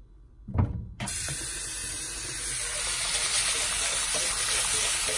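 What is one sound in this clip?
Water runs from a tap onto beans in a mesh sieve.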